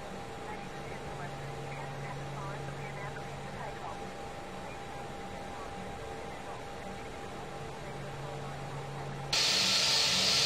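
A jet engine hums low and muffled.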